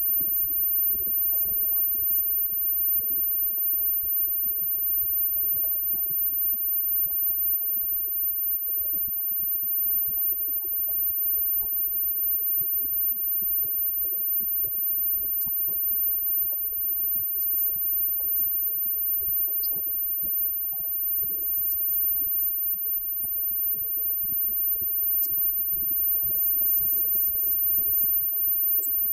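Electric guitars play through amplifiers.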